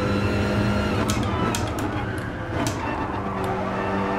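Gear shifts clack sharply.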